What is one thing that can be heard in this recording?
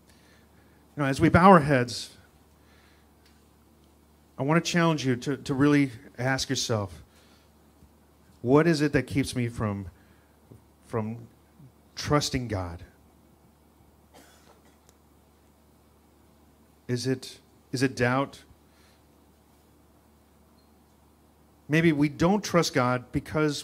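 A man speaks slowly and calmly into a microphone, with long pauses, in a slightly echoing room.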